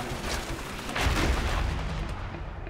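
A heavy crash thuds and crunches.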